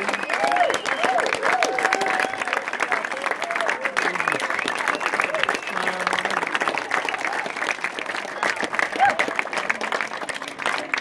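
A crowd claps hands in rhythm close by, outdoors.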